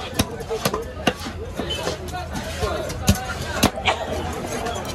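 A knife chops into a fish on a wooden block with sharp thuds.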